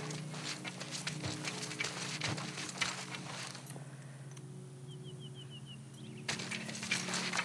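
Tall grass rustles and swishes as someone moves through it.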